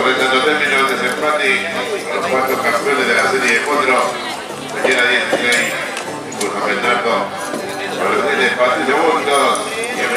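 A man talks loudly over a loudspeaker in an open outdoor space.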